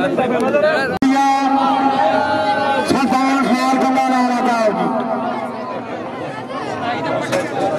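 A man speaks loudly through a loudspeaker, drawing out his words in long calls.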